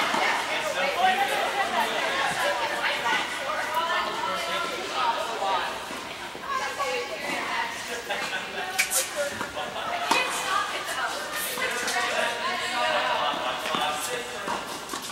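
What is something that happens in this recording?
Tennis rackets strike a ball back and forth in a large echoing indoor hall.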